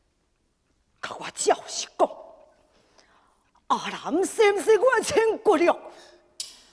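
A man speaks in a stylised, sing-song stage voice.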